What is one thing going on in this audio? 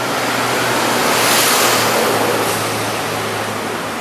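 A truck and cars pass close by with a rushing roar.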